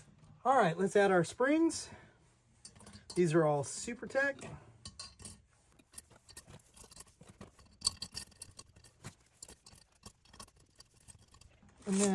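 Small metal parts click and tap against a metal engine part.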